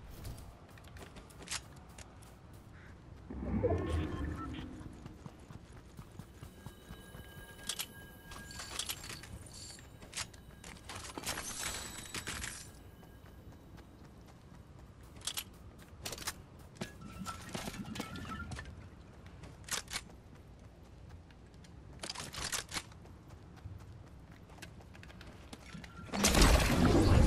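Quick footsteps patter on dirt.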